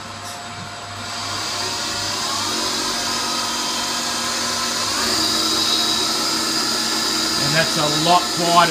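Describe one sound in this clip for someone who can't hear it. A machine motor whirs up and runs with a steady hum that rises in pitch.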